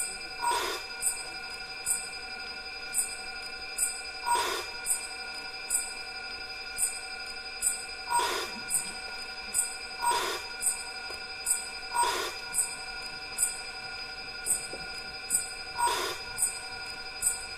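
Music with a steady rhythmic beat plays through loudspeakers in a large hall.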